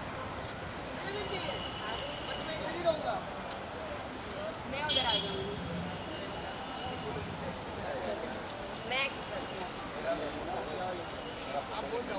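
A crowd of men chatter and call out outdoors.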